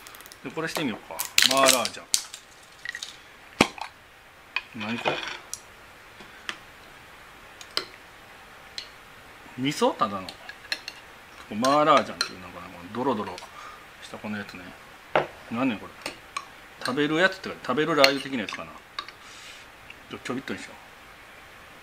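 A man talks calmly and close by, in bursts.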